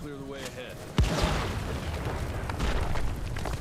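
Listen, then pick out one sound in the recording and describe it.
An explosion booms and rocks crash down.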